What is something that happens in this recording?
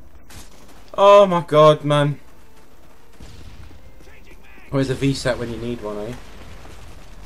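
A young man speaks with animation into a headset microphone.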